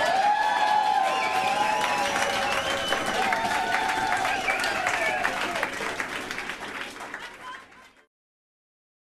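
An accordion plays a lively tune in a room and fades away.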